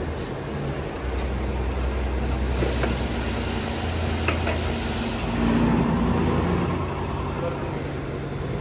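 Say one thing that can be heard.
A fuel pump motor hums steadily.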